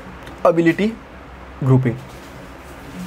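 A man speaks a few short words nearby.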